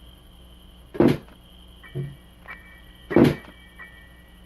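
A flat object drops and thuds onto a floor.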